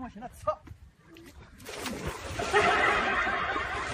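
A man splashes into water.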